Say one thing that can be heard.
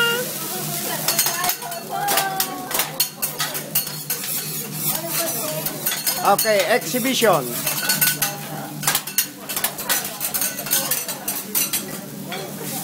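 A metal spatula clicks and clatters on a hot griddle.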